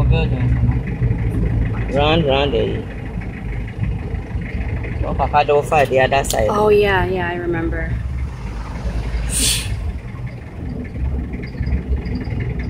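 A vehicle engine rumbles low and steady from inside the vehicle.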